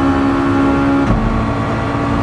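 A racing car engine shifts up a gear with a brief drop in pitch.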